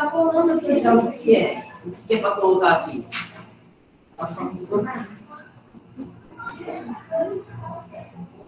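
A young woman speaks with emotion through an online call.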